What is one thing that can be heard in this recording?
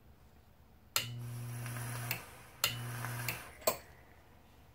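An electronic vaping device buzzes steadily while firing.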